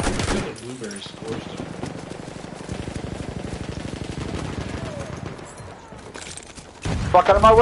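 Footsteps crunch quickly on dirt.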